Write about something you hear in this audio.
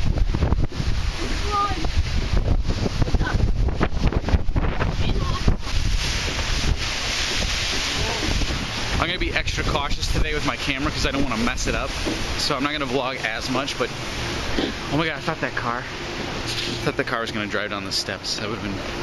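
Wind buffets a microphone outdoors.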